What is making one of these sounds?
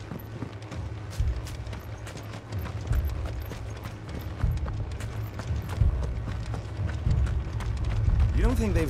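Armoured footsteps thud and clink on stone and grass.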